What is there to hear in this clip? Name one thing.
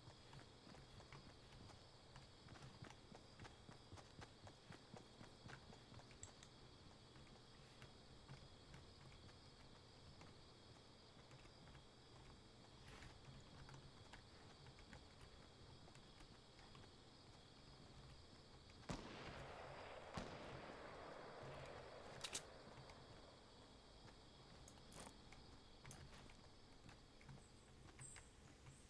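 Footsteps patter quickly through grass.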